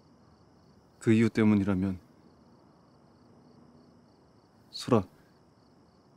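A young man speaks softly in a tearful, trembling voice close by.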